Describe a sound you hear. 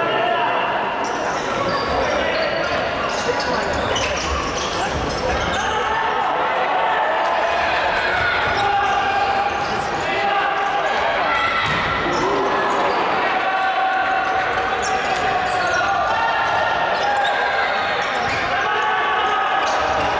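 A ball thuds against players' feet.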